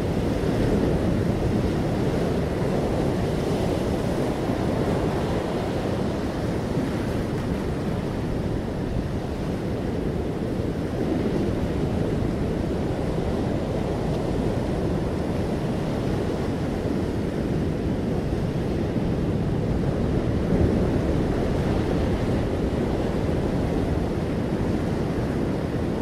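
Sea water splashes against a stone edge.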